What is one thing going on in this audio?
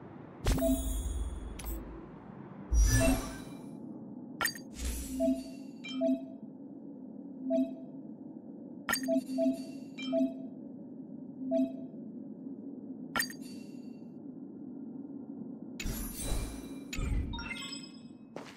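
Game menu chimes and clicks sound as options are picked.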